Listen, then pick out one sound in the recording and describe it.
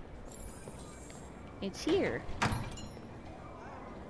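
A shop door opens.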